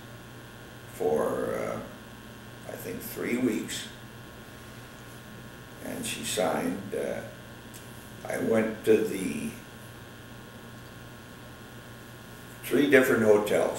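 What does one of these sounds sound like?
An elderly man speaks calmly and slowly, close by, with pauses between phrases.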